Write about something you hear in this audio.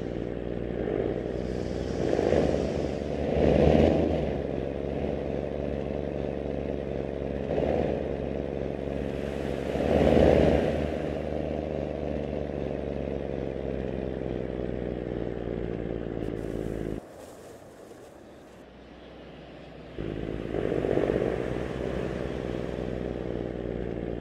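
A bus engine hums steadily as the bus drives along, its pitch slowly falling.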